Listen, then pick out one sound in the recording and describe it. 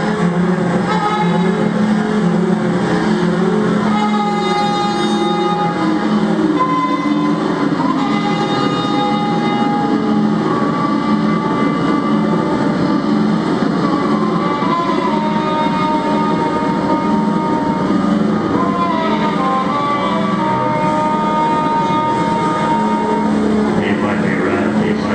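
An electronic keyboard drones with a steady, layered hum.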